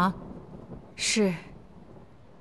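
A middle-aged woman answers softly.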